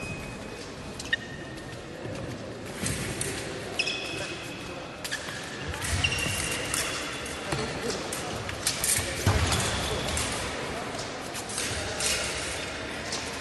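Fencing blades clink against each other.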